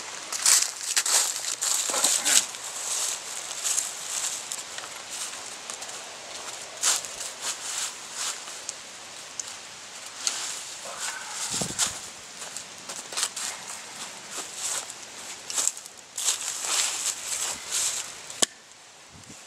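A chainsaw roars as it cuts through a log.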